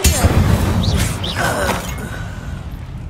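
A magic spell bursts with a fiery whoosh and crackle.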